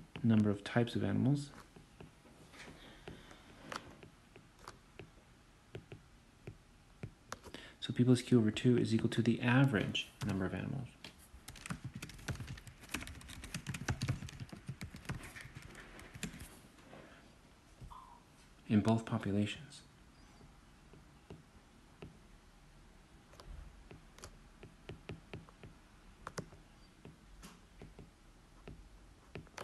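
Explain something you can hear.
A stylus taps and scrapes lightly on a glass tablet.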